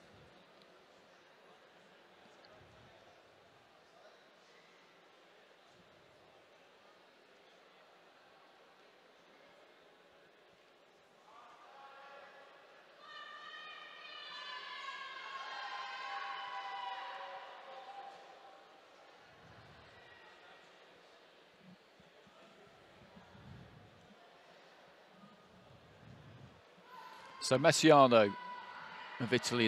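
A large crowd murmurs and chants in an echoing arena.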